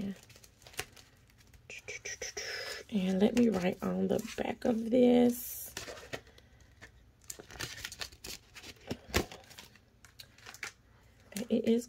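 Paper bills and plastic sleeves rustle as they are handled.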